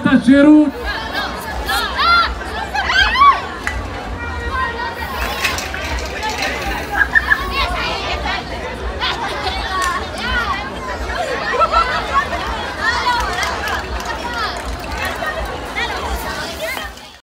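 A large crowd chatters and calls out nearby, outdoors.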